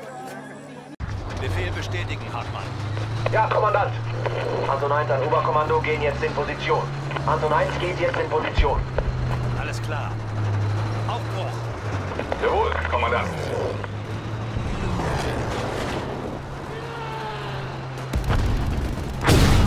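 A tank engine rumbles deeply.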